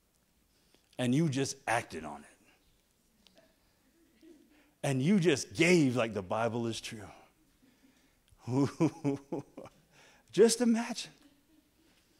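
A man speaks calmly through a microphone in an echoing hall, in short phrases with pauses.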